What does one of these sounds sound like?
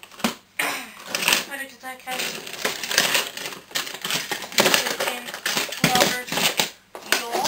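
Plastic toy parts clatter and scrape on a cardboard surface close by.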